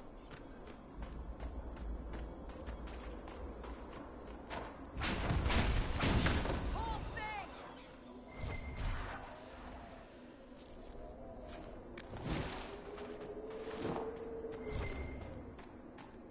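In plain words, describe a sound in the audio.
Footsteps crunch quickly on sand.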